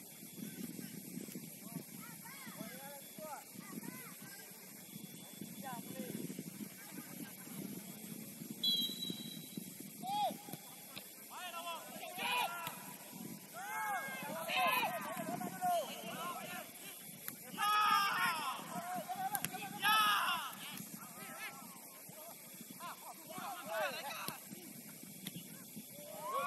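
Young men shout across an open outdoor field, heard from a distance.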